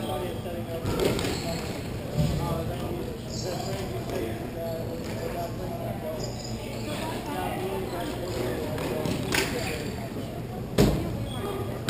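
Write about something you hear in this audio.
Hockey sticks clack sharply against a ball and each other.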